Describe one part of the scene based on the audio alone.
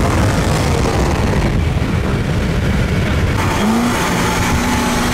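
Wind rushes loudly past a moving car.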